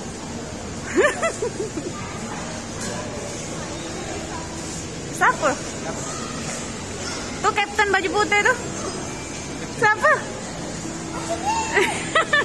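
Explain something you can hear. A young girl speaks and squeals excitedly close by.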